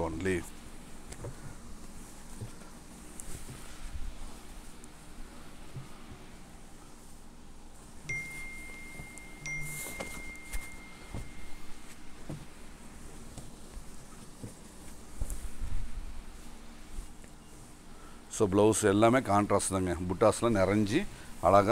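Silk cloth rustles softly as it is unfolded and spread out.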